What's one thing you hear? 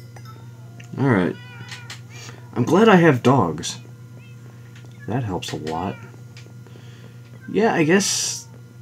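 Cats meow close by.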